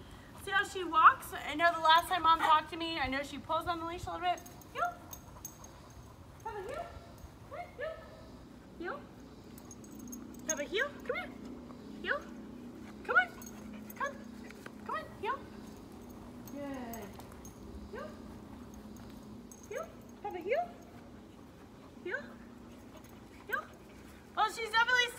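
A young woman talks to a dog in a high, lively voice.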